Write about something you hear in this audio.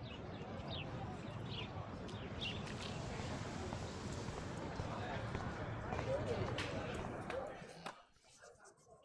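Footsteps walk along a paved path.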